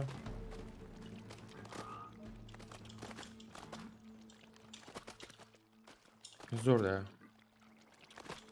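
Light footsteps patter on rock.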